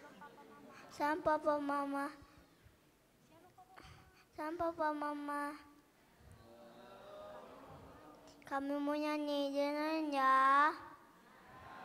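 A young boy sings into a microphone over loudspeakers, in short held phrases.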